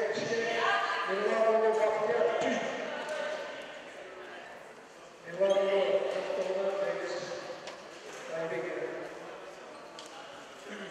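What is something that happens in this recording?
Men and boys shout and call out across a large echoing hall.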